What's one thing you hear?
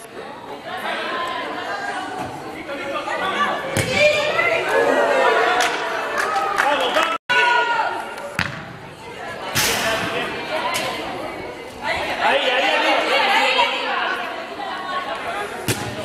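Young women shout and call out across an echoing indoor pitch.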